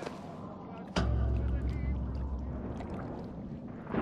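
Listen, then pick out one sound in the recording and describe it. Water splashes and sloshes in a metal basin.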